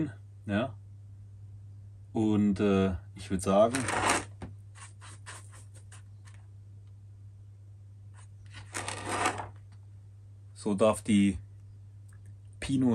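A man talks calmly close by, in short bursts with pauses.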